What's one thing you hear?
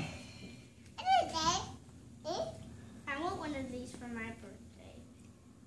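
A young child talks in a high, lively voice nearby.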